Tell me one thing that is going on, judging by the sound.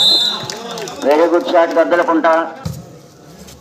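A crowd of men cheers loudly.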